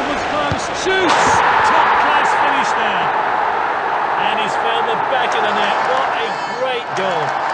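A stadium crowd roars and cheers loudly, then dies down.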